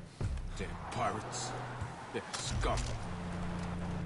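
A man talks calmly into a close microphone.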